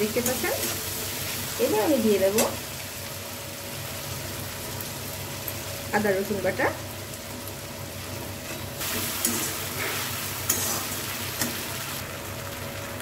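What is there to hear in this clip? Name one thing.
A metal spatula scrapes and stirs food in a wok.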